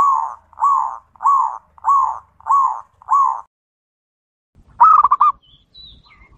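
A dove coos in short, repeated calls close by.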